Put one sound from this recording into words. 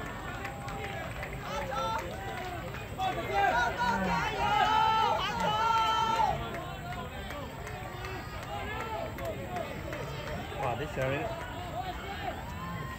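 A crowd of spectators cheers and shouts outdoors at a distance.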